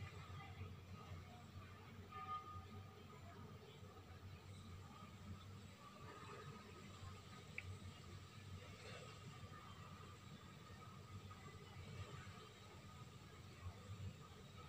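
A paintbrush brushes softly against a rough wall.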